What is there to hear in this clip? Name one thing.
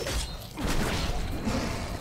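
Heavy blows and wet, squelching hits sound out in a fight.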